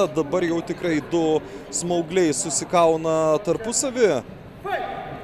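A man speaks loudly in a large echoing hall.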